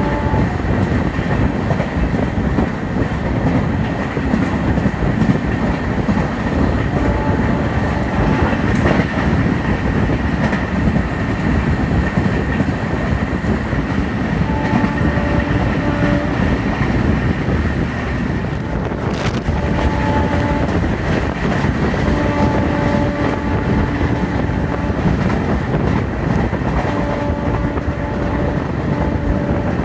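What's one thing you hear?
A train rumbles and rattles along the tracks at speed.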